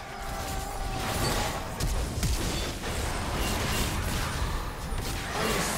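Game spells and attacks crackle and burst in a fast fight.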